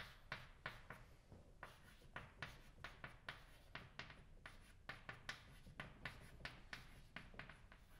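Chalk taps and scrapes quickly on a blackboard.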